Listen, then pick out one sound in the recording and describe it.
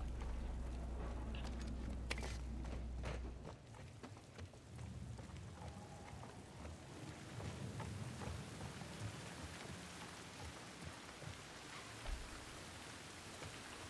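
Footsteps crunch over debris and broken glass.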